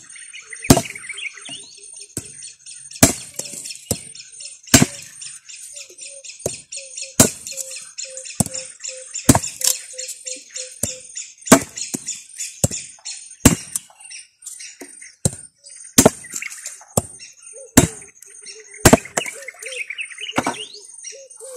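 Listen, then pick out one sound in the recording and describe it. A machete chops sharply into wooden stems, again and again.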